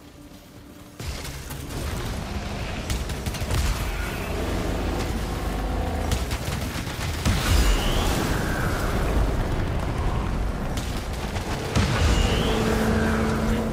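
Laser weapons fire and crackle in bursts.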